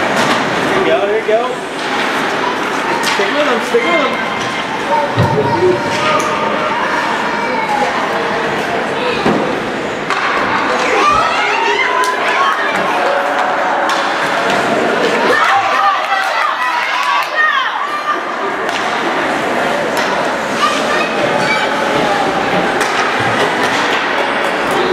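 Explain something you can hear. Ice skates scrape and swish across an ice rink.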